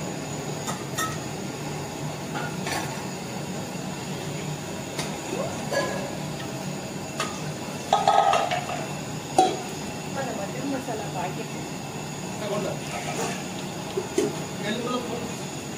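A metal pot clanks against the rim of a larger pot.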